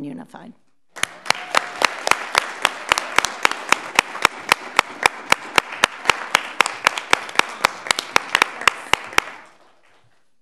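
A small group of people applauds in a hall.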